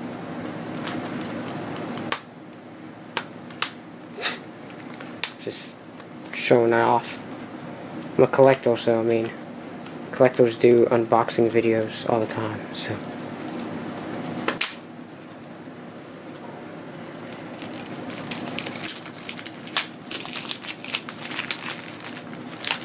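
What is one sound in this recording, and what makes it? A plastic disc case clicks and rattles as it is handled.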